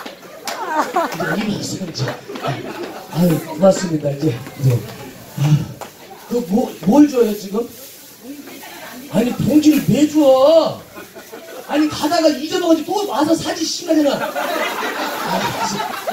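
A man speaks into a microphone with animation, heard through loudspeakers.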